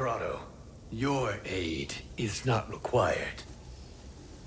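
Another man answers in a deep, firm voice, close by.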